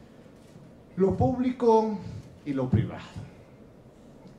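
A man speaks into a microphone in a room.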